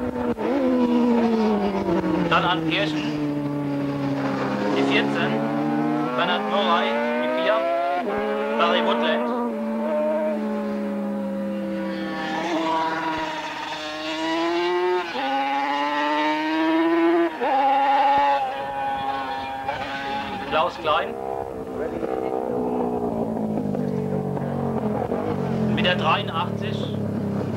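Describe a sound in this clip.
Racing motorcycle engines scream past at high speed, their pitch rising and falling as they pass.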